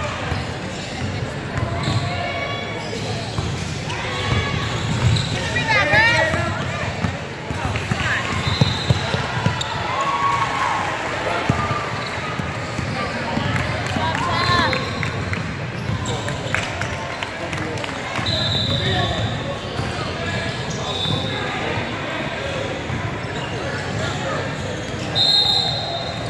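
Players and spectators call out in a large echoing gym.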